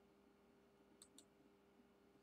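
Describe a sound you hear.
Short interface clicks sound as a menu opens.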